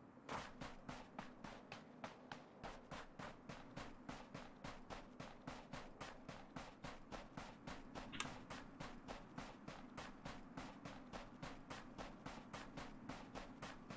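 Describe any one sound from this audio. Footsteps crunch quickly and steadily through snow.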